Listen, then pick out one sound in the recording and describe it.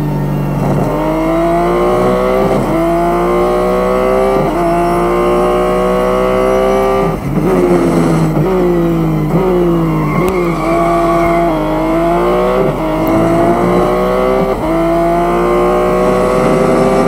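A race car engine roars, rising in pitch and dropping sharply at each gear change.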